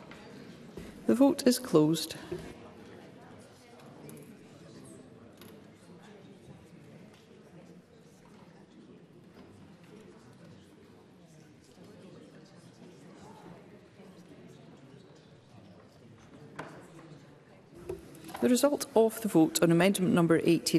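A woman speaks calmly through a microphone in a large hall.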